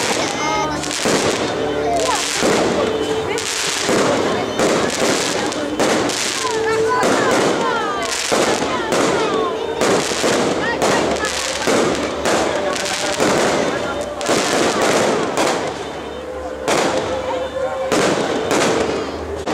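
Fireworks burst with loud booms and bangs, one after another.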